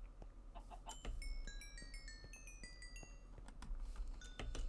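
Small bright chimes tinkle rapidly.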